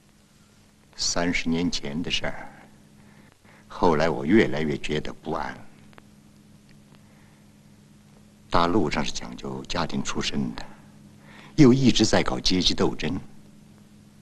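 A middle-aged man speaks quietly and calmly, close by.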